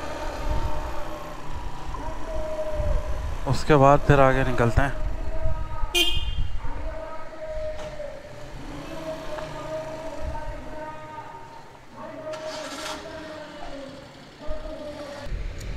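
A motorbike engine idles steadily close by.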